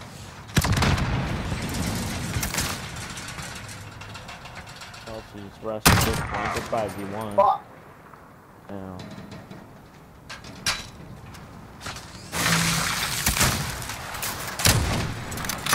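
A rifle fires loud single shots that echo and fade.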